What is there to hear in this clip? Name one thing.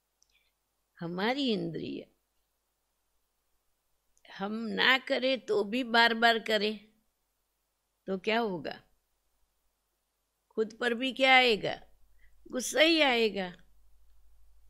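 An elderly woman speaks calmly into a microphone, in short phrases with pauses.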